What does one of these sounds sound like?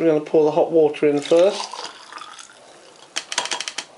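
Water pours from a plastic jug into a glass mug.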